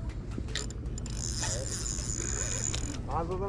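Fishing line whizzes off a reel during a cast.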